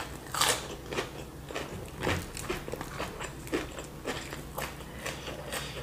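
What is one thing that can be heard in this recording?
Food crackles and crunches as fingers handle it close by.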